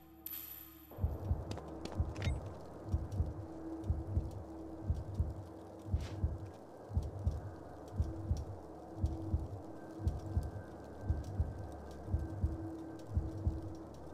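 Heavy footsteps thud quickly at a running pace.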